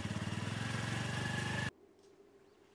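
A motorcycle engine runs loudly close by.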